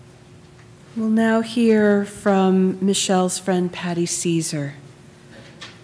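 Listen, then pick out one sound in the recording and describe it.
A woman sings a short, slow melody through a microphone.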